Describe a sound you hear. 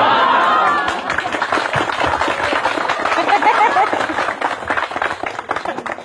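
An audience claps rapidly.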